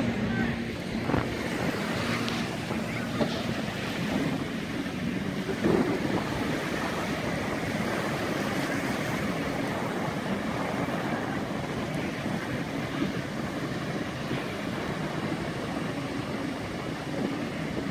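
Waves wash steadily onto a beach.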